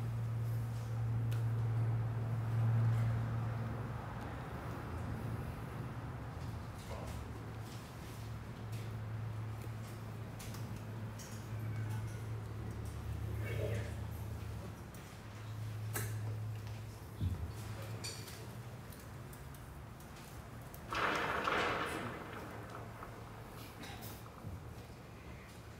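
A saxophone plays a jazz melody.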